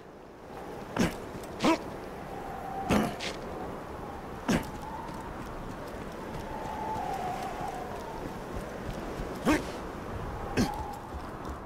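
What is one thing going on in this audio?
Footsteps crunch on snow and ice.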